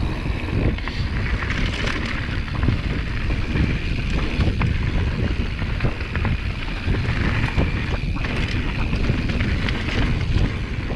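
Bicycle tyres crunch and rattle over a dry dirt trail.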